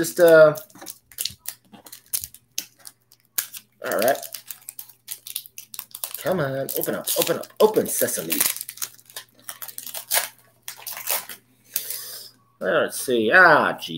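Cellophane wrapping crinkles in a man's hands.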